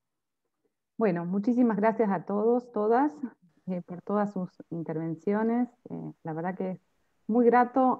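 A middle-aged woman speaks with animation over an online call.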